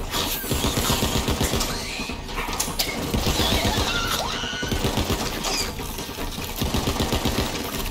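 Rapid gunfire rattles in quick bursts.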